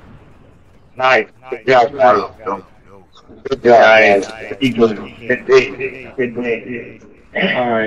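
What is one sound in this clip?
A man talks into a headset microphone, close and animated.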